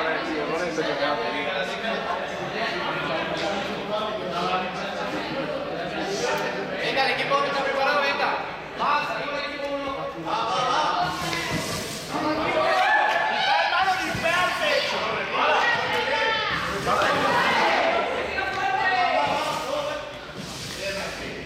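Children and adults chatter and shout in a large echoing hall.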